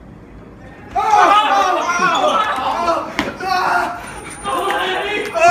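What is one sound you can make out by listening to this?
Young men laugh and shout loudly in an echoing room.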